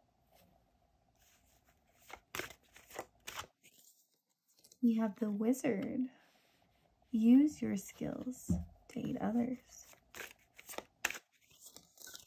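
A deck of cards is shuffled with quick riffling flicks.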